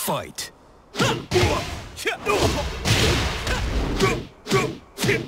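Fighters land heavy punches and kicks with sharp thuds.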